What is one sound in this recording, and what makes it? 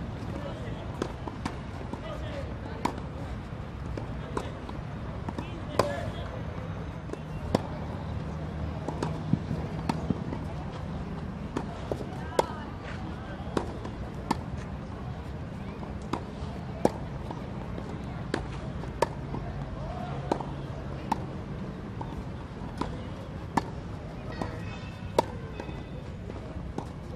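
A tennis racket strikes a ball with sharp pops, again and again.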